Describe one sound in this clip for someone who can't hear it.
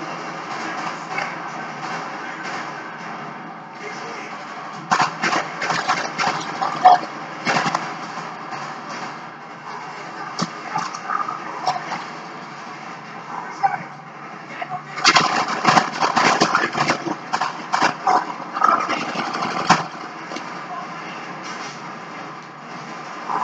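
Gunfire and explosions from a video game play through a television's speakers.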